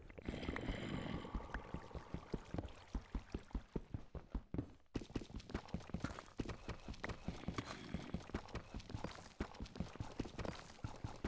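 A pickaxe chips at stone in quick, repeated knocks.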